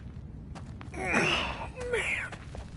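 A man speaks loudly and urgently.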